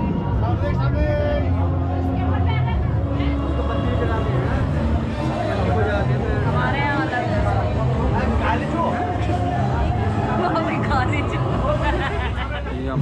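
A crowd of men and women chatter nearby.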